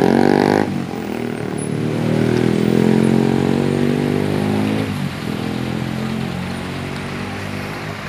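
Truck diesel engines rumble and idle loudly nearby.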